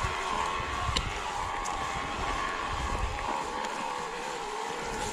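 An electric bike motor whines steadily.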